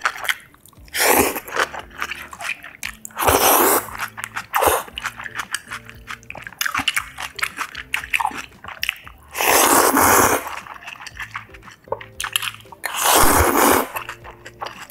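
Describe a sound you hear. A young woman slurps noodles loudly, close up.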